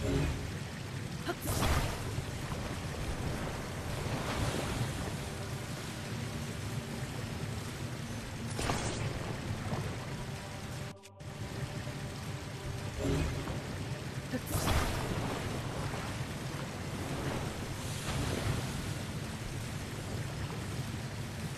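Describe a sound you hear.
Molten lava rumbles and bubbles steadily.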